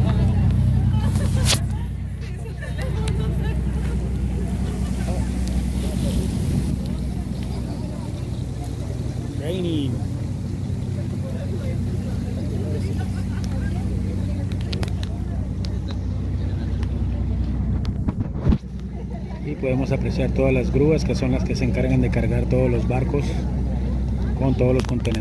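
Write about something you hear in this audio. A boat engine hums steadily and low.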